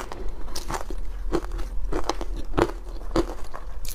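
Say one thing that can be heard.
A spoon scrapes through shaved ice.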